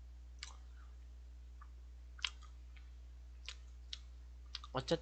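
A young man crunches on a snack close to a microphone.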